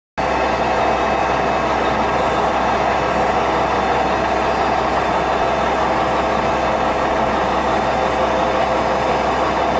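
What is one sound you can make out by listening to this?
A machine motor hums low and steady.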